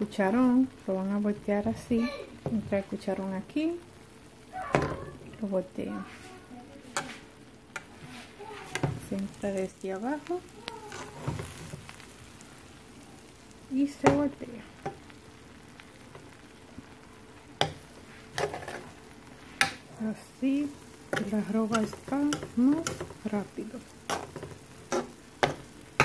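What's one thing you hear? A metal spoon scrapes against a pot while stirring rice.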